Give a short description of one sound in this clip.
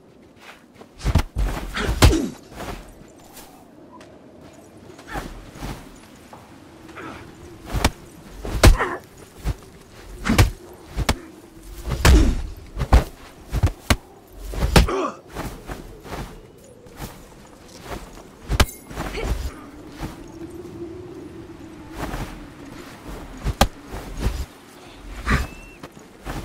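Punches, kicks and swooshing strikes from a fight land in quick bursts.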